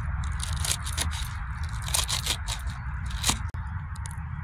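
A knife chops leaves on a wooden board with sharp knocks.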